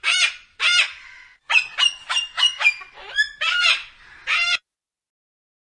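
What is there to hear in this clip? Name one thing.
A cockatoo gives a run of harsh, raucous screeches.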